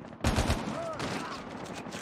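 A gun is reloaded with metallic clicks.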